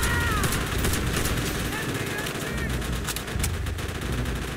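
Rifles fire in rapid sharp cracks.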